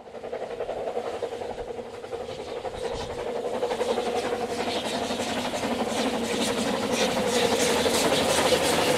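A steam train's wheels clatter on the rails.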